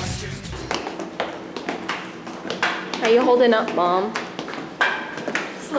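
Footsteps tap on hard stairs.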